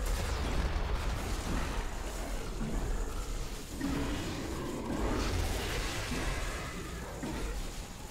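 Deep rumbling booms roll throughout.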